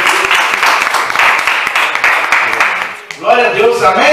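A small audience claps hands.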